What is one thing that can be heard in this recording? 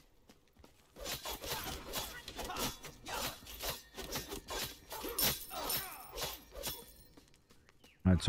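Weapons clash and spells burst in a fight.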